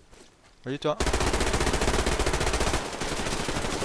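An automatic rifle fires rapid bursts close by.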